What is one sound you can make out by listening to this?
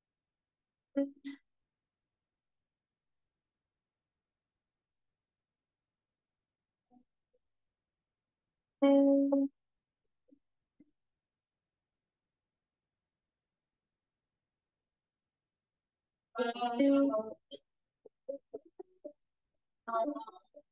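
A woman speaks in short bursts through an online call.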